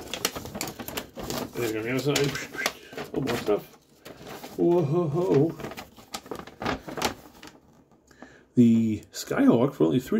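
Paper crinkles and rustles as pages are handled close by.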